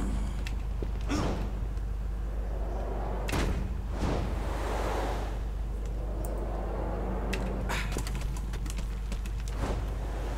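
Heavy thuds land on rooftops.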